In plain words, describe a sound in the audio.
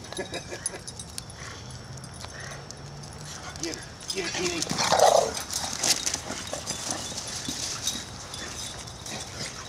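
Dogs run and scamper across dry grass.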